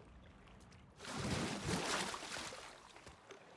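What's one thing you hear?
Water splashes loudly as a body plunges in.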